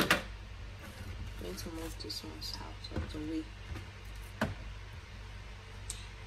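Pineapple peels rustle and thud as they are gathered up.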